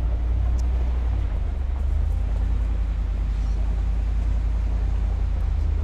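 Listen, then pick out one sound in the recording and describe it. A car engine rumbles low and steady while driving.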